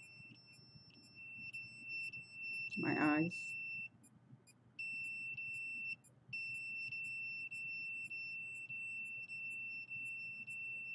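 A handheld thermometer gives a steady high beep that pulses rapidly.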